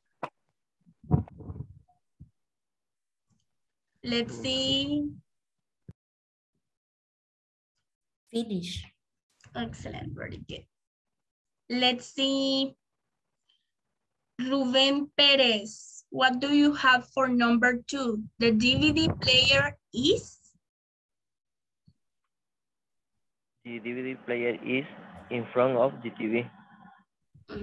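A woman speaks through an online call, explaining in a calm teaching voice.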